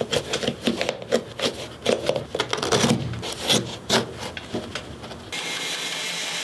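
Leather creaks and rustles as hands work inside a boot.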